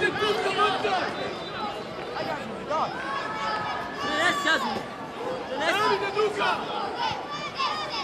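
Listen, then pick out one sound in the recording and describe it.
Young boys shout and call out to each other outdoors on an open field.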